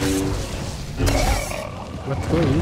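Lightsaber strikes clash in combat.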